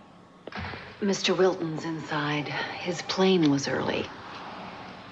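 A man speaks calmly to a woman.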